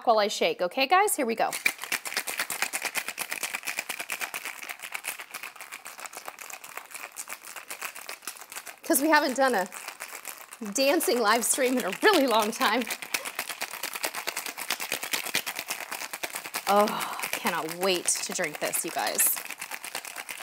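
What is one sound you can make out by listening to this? Ice rattles rapidly inside a metal cocktail shaker.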